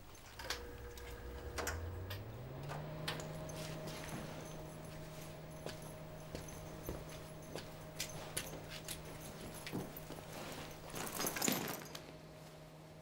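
A bag rustles and clicks as it is handled.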